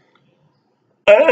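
A man begins reciting in a loud, melodic voice, close to a microphone.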